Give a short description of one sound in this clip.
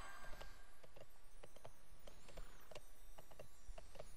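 Hooves gallop on a hard floor.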